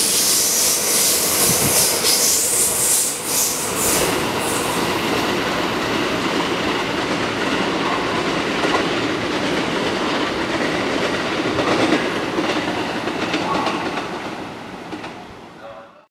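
A train rumbles past close by on the tracks and fades into the distance.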